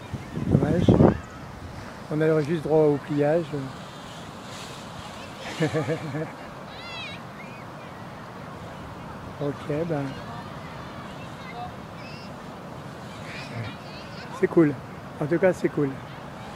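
Gentle waves wash onto the shore.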